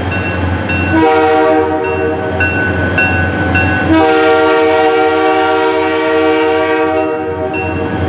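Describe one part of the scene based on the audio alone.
A train horn blows loudly in long blasts.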